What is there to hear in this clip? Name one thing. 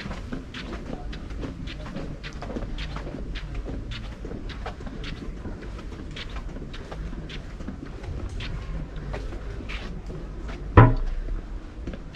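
Footsteps climb stone stairs at a steady pace outdoors.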